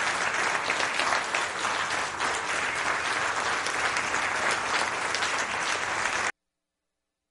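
A group of singers sings along with the band.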